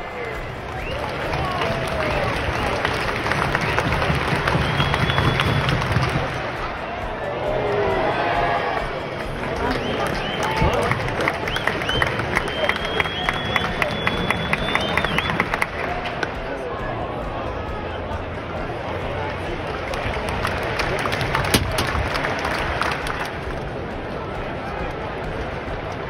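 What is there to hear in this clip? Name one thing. A large stadium crowd murmurs and chatters in the open air.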